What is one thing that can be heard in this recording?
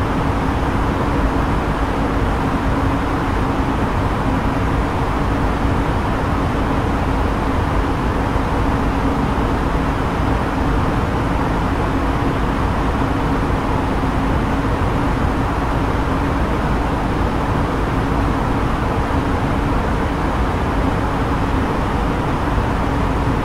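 Jet engines drone steadily in an airliner cockpit in flight.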